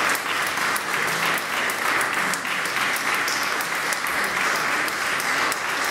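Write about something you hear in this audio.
An audience applauds loudly and steadily in an echoing hall.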